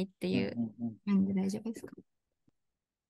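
A young man asks a question through an online call.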